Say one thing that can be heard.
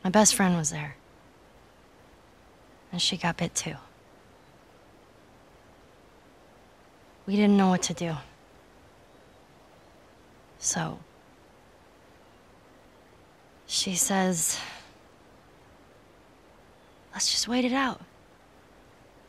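A young girl speaks quietly and hesitantly in short bursts, close by.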